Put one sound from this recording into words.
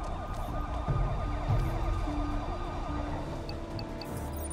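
Electronic keypad buttons beep as they are pressed.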